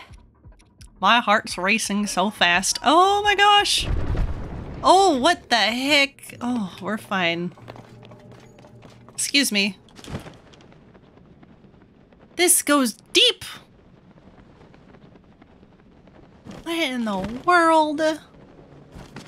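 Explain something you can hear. A young woman talks with animation into a nearby microphone.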